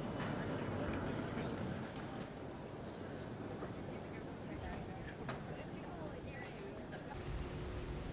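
A crowd of passengers murmurs close by.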